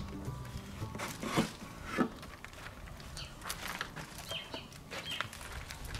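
A wooden board knocks and clatters as it is handled.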